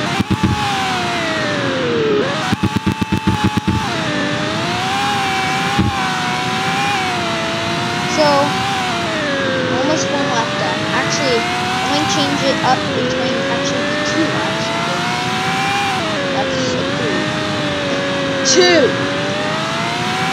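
A car engine revs and whines steadily, rising and falling in pitch.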